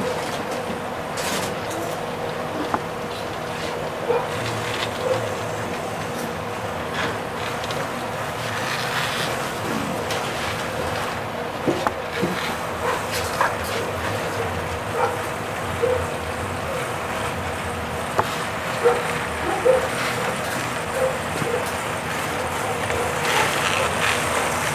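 A model train rumbles and clicks steadily along its track.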